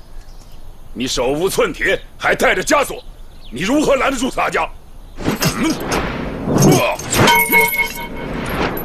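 A man shouts gruffly and loudly nearby.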